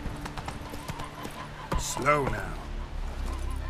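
A horse's hooves clop rapidly on the ground.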